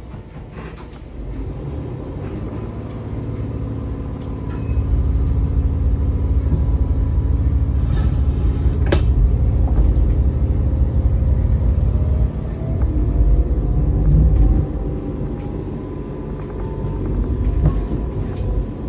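A diesel train engine rumbles and grows louder as the train pulls away.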